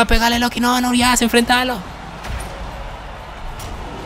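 A magical blast bursts with a loud whoosh.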